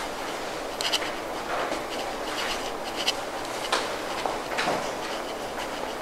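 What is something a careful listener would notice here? A felt eraser rubs across a whiteboard.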